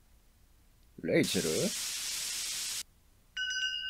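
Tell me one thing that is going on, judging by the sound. Loud static hisses and crackles.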